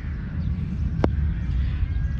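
A cricket bat taps on the ground.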